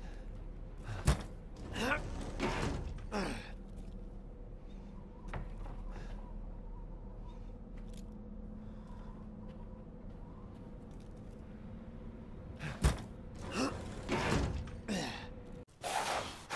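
Wooden boards creak and crack as they are pried loose.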